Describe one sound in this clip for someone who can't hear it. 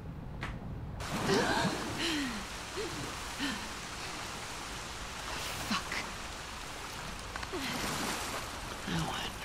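Water splashes and laps as a swimmer surfaces and wades.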